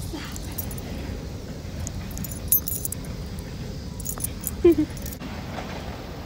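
Fur and clothing rustle and bump close by as a small dog is picked up.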